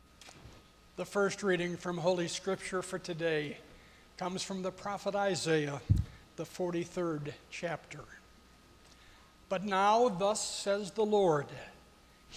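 An elderly man speaks slowly and clearly into a microphone in an echoing hall.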